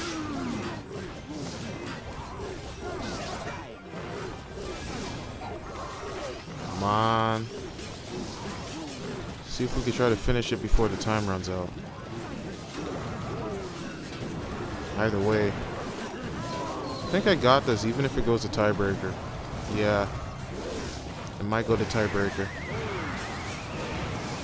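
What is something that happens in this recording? Battle sound effects clash and pop from a strategy game.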